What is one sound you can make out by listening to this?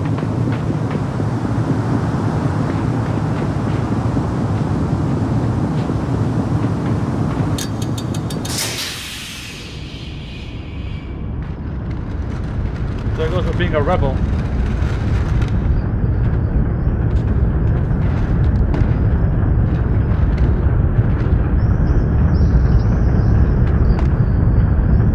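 A large machine rumbles and grinds steadily.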